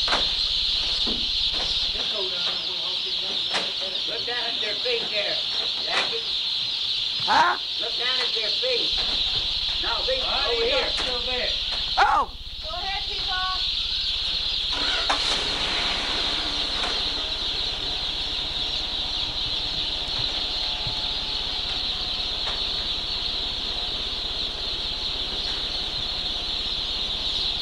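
Many chicks chirp steadily all around.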